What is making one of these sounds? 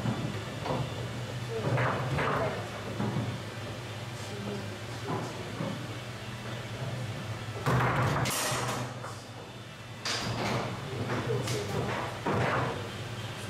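Foosball rods clack and slide as players spin and shift them.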